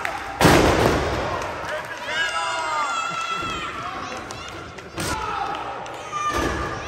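A body slams onto a wrestling ring mat with a loud booming thud.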